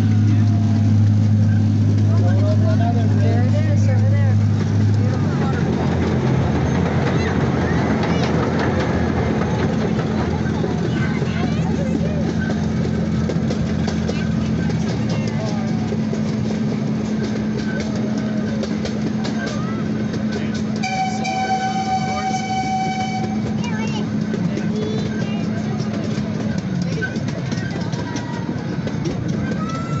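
A small park train rumbles as it rolls along its track.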